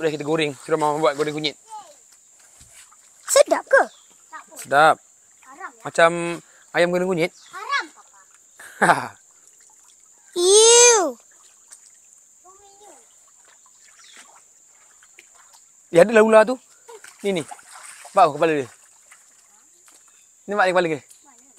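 Children talk and call out playfully nearby.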